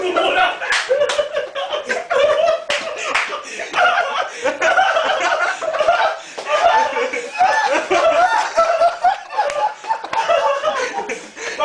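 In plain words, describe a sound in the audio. A young man shouts and laughs loudly close by.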